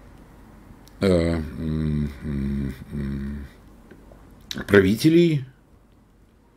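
An elderly man speaks calmly into a microphone on an online call.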